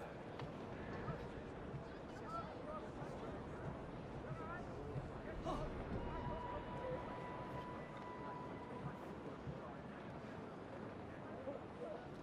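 Footsteps tread slowly on cobblestones.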